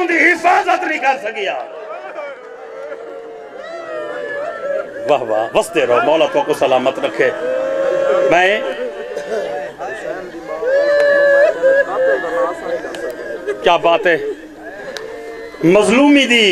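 A man speaks passionately into a microphone, his voice loud and amplified, sometimes chanting in long drawn-out tones.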